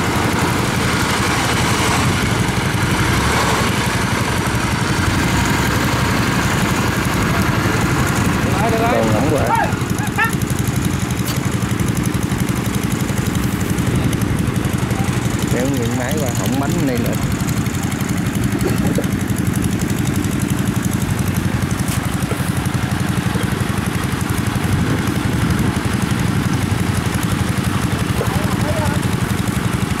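A harvester engine rumbles steadily close by.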